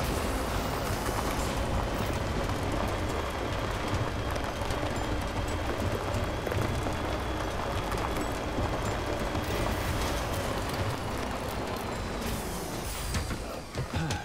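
Tyres crunch over gravel and rocks.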